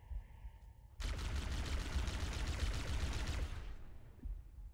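A plasma blast bursts with a loud, rushing hiss.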